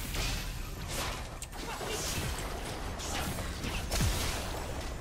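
Game spell effects whoosh and crackle in quick bursts.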